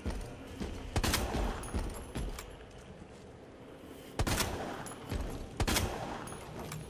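Gunshots fire in short, loud bursts.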